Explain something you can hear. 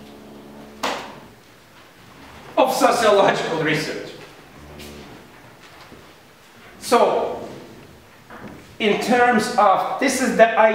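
A middle-aged man speaks with animation in a room with some echo.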